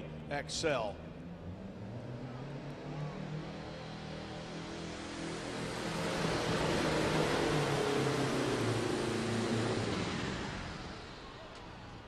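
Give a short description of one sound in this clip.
A tractor engine roars loudly under heavy strain, rising and then fading.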